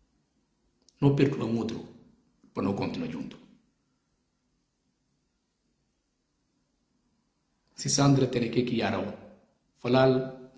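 A middle-aged man speaks in short bursts with pauses, close to a microphone.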